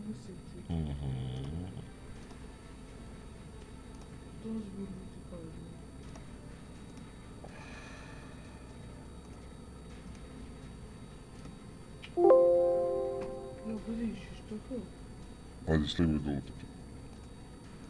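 A fire crackles softly in a fireplace.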